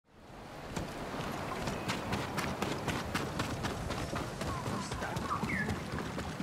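Armoured footsteps clatter quickly on hard ground.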